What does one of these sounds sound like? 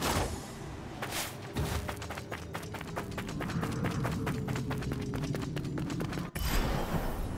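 Quick footsteps crunch on snow.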